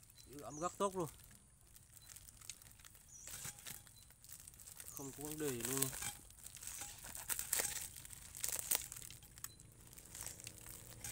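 Plastic wrapping crinkles and rustles as it is handled.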